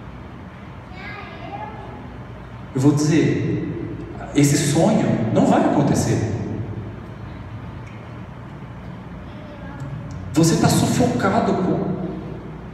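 A young man speaks with animation into a microphone, heard through loudspeakers in a reverberant hall.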